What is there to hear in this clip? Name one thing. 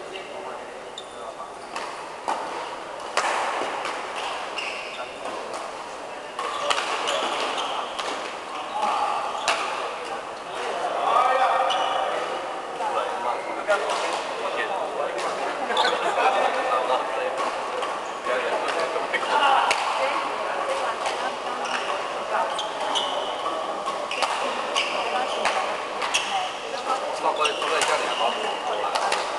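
Shoes squeak on the court floor.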